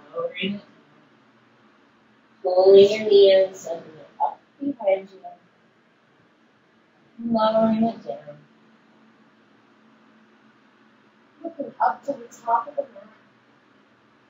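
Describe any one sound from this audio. A woman speaks calmly, giving instructions close by.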